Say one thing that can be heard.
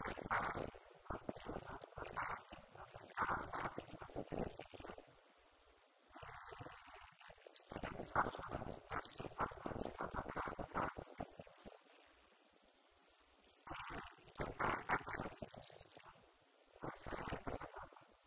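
A woman speaks into a microphone with animation, heard through a loudspeaker in an echoing room.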